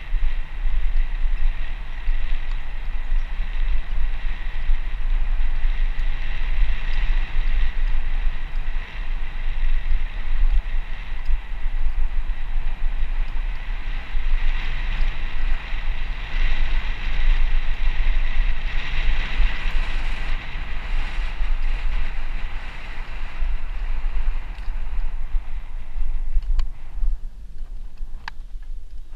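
Tyres rumble and crunch over a bumpy dirt track.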